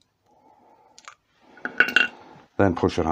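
Small metal parts clink softly as they are picked up.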